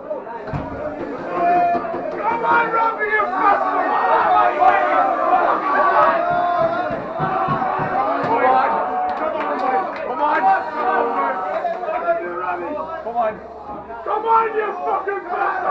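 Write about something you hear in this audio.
A crowd of young men sings and chants loudly together in an echoing room.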